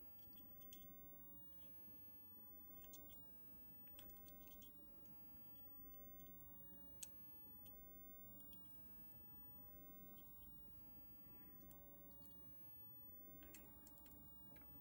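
Solder sizzles and crackles faintly under a soldering iron.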